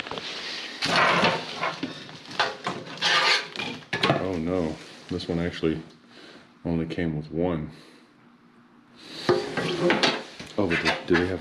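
A flexible hose scrapes and knocks against a metal sink.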